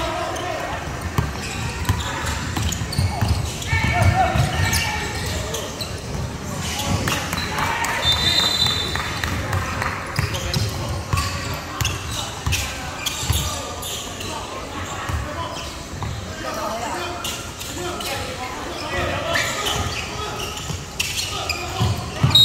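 Players shout to each other across the echoing hall.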